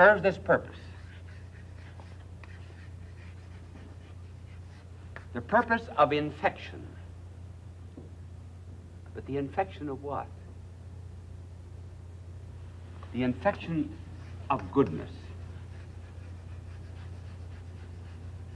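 Chalk scrapes and taps on a blackboard.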